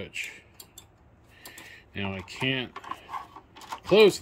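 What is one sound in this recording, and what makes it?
A plastic tool taps and scrapes against metal parts.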